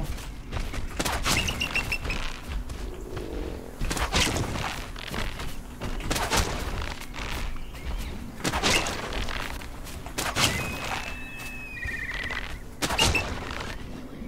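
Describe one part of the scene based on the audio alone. A slingshot fires with sharp snaps, again and again.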